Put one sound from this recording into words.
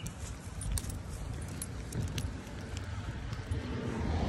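A dog's paws patter on pavement.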